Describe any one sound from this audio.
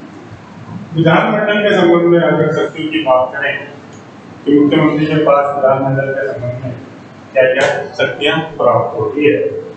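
A man speaks clearly and steadily, close by.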